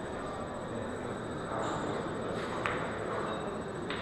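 A cue stick strikes a pool ball with a sharp tap.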